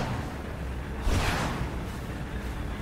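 A blast bursts with a bright boom.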